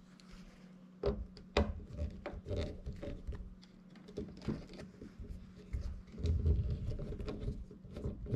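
Small metal parts click and rattle in hands.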